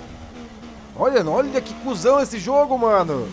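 A racing car engine revs up and down sharply as it shifts gears.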